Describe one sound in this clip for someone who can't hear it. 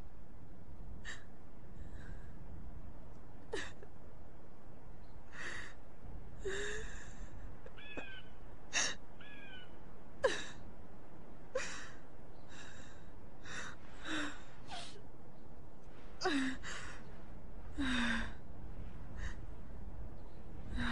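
A young woman sobs and gasps for breath nearby.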